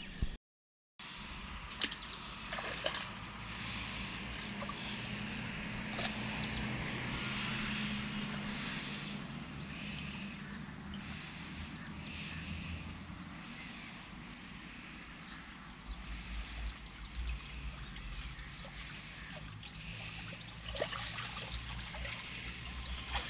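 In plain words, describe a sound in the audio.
Water splashes and sloshes as a man wades through a river.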